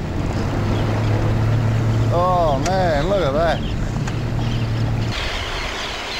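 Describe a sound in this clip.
A small motorboat engine drones steadily.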